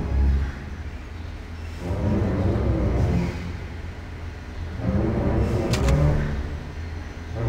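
Heavy footsteps thud on a metal floor.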